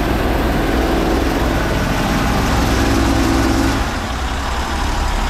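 Steam hisses loudly from a high-pressure nozzle.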